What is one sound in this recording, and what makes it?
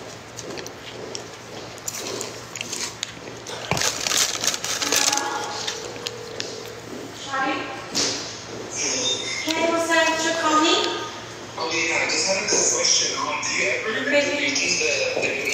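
A young woman slurps a drink through a straw.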